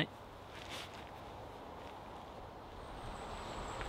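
Tent fabric rustles as a man moves inside the tent.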